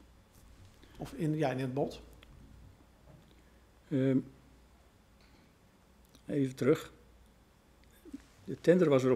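An elderly man speaks slowly into a microphone, with pauses.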